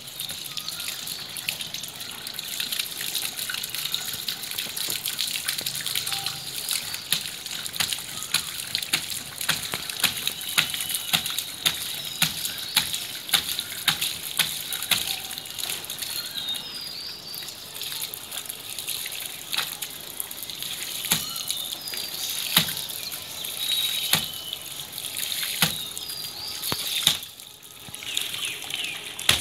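Plastic pipe fittings click and knock as they are handled.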